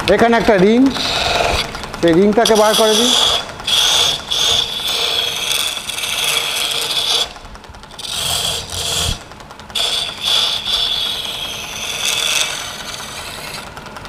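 A chisel scrapes and hisses against wood spinning on a lathe.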